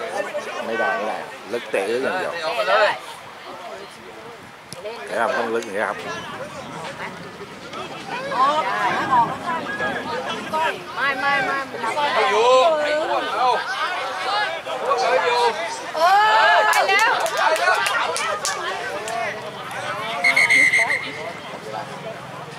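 Young players shout loudly to each other outdoors.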